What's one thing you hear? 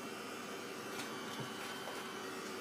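Paper crinkles as a hand picks it up.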